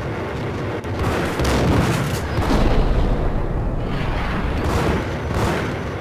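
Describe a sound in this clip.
Gunshots boom and echo off hard walls.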